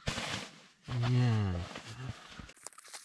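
A young man groans briefly close by.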